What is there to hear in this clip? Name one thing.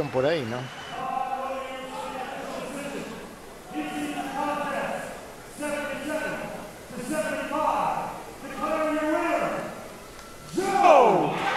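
A man announces through a loudspeaker in an echoing hall.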